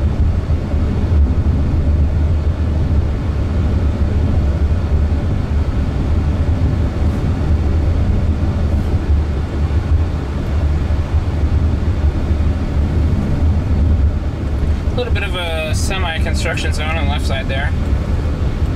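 A car drives along a road with a steady low rumble of tyres and road noise from inside the cabin.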